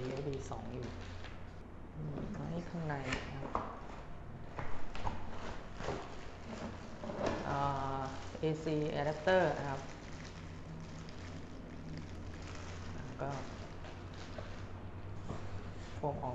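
Styrofoam packing squeaks and scrapes against cardboard.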